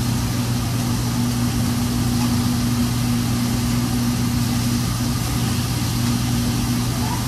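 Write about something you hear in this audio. Meat sizzles on a hot griddle.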